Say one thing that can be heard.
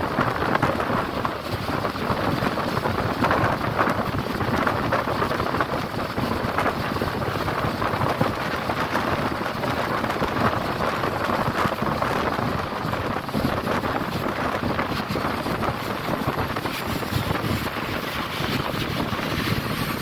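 A bus engine rumbles steadily from inside while driving.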